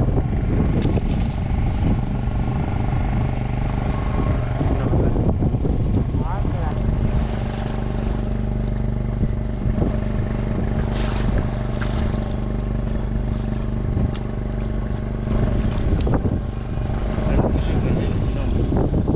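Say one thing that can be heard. Water splashes against the side of a boat.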